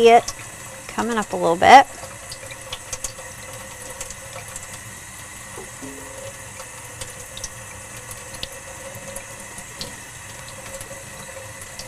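Water runs from a tap and splashes softly into a sink.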